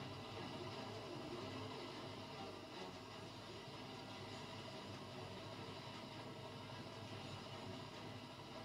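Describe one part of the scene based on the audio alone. Video game music and effects play through a television's speakers.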